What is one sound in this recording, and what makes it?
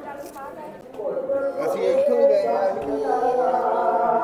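A crowd of voices sings and chants loudly nearby.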